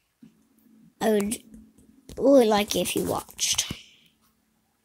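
A young boy talks excitedly close to a microphone.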